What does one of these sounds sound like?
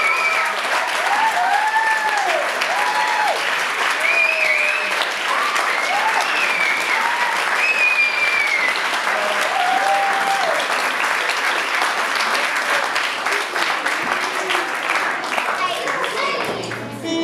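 An audience applauds and cheers in a large room.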